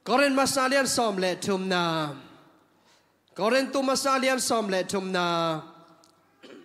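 A man speaks slowly and calmly into a microphone over loudspeakers in a large room.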